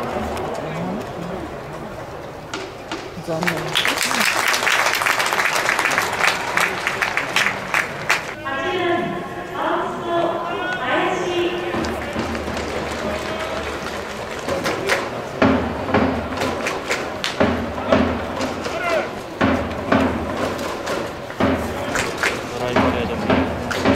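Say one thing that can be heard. A crowd cheers and chants in a large open stadium.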